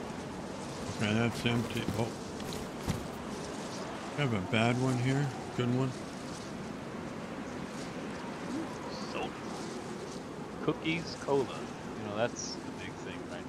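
A man talks casually through a headset microphone.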